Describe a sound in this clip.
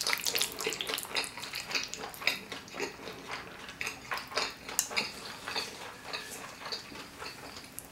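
Saucy noodles squelch wetly as they are lifted.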